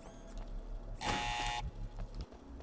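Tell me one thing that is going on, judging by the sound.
A heavy door clanks open.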